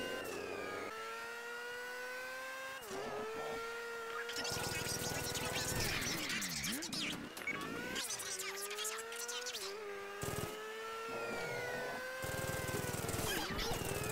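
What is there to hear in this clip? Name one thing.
A car engine roars steadily as the car speeds along, shifting up and down in pitch.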